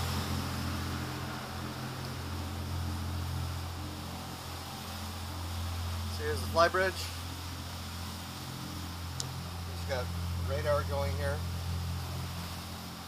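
Water rushes past a moving boat's hull.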